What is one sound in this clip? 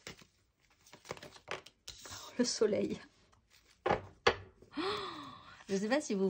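A deck of cards is shuffled with a quick riffling rustle.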